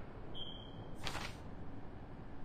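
A short whoosh sounds as a game map opens.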